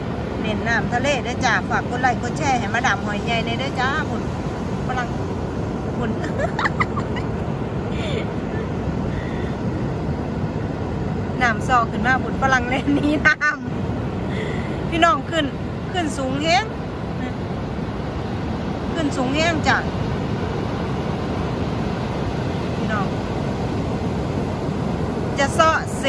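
Waves wash steadily onto a beach nearby.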